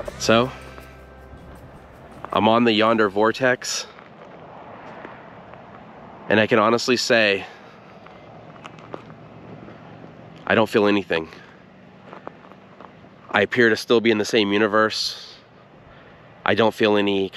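A middle-aged man talks calmly close to the microphone, in short bursts with pauses.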